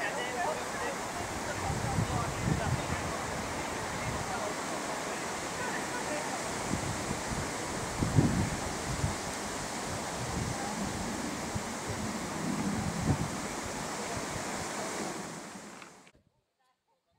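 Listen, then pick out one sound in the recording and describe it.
Wind rumbles and buffets outdoors by open water.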